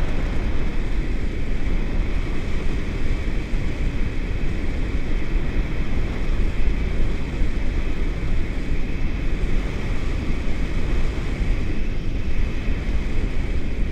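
Strong wind rushes and buffets loudly against a microphone outdoors.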